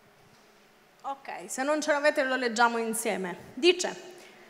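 A young woman speaks into a microphone, heard through loudspeakers in a large hall.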